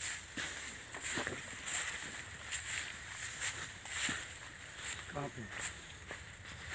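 Footsteps crunch and rustle through dry grass and leaves outdoors.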